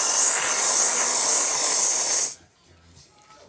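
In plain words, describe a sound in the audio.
Whipped cream hisses out of a spray can.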